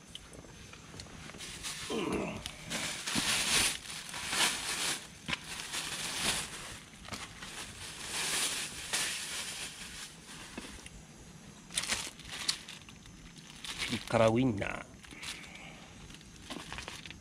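Charcoal crackles softly in a small grill.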